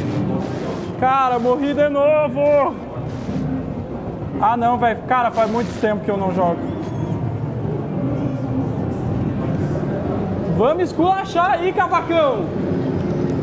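A young man talks excitedly into a nearby microphone.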